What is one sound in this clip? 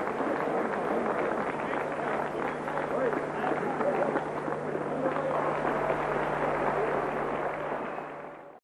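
A large crowd claps along rhythmically in a big echoing hall.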